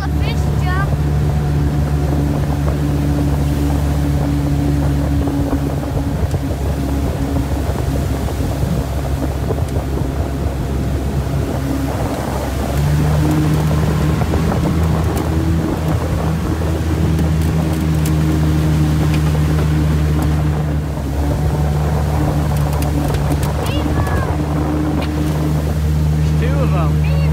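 A boat engine drones steadily and loudly close by.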